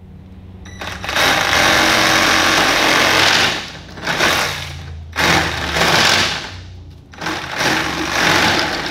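A power tool whirs loudly in short bursts, cutting into plastic pipe.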